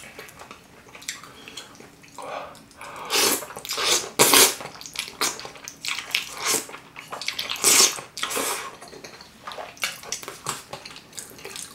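A man chews food wetly, close up.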